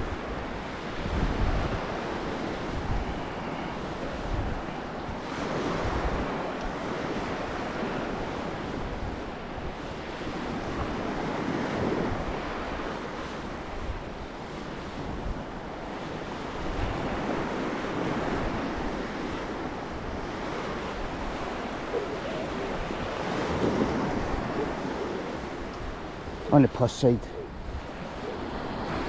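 Footsteps squelch on wet sand.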